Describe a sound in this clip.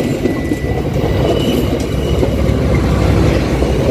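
A train rumbles past close by, wheels clattering on the rails.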